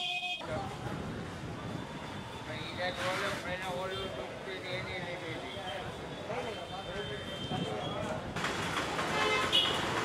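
A busy street crowd murmurs.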